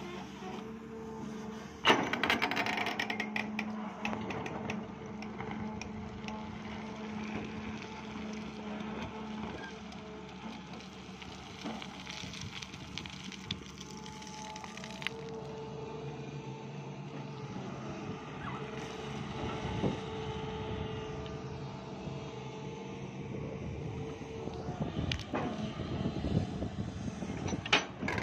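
A diesel excavator engine hums and whines steadily nearby.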